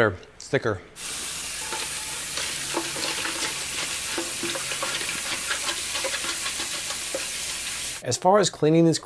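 Tap water runs and splashes into a metal sink.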